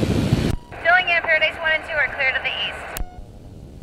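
A man speaks over a headset intercom.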